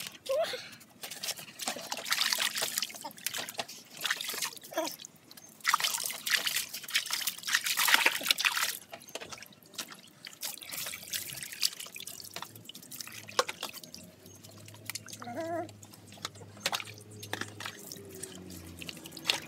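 Water splashes as a puppy is bathed in a tub.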